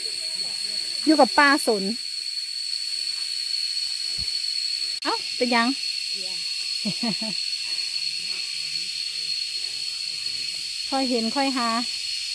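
A woman calls out loudly outdoors.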